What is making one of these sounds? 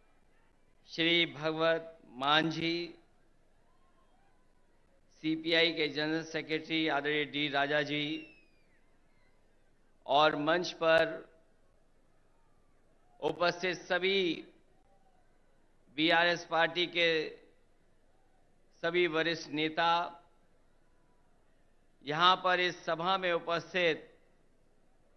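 A man speaks forcefully into a microphone through loudspeakers, in short bursts with pauses.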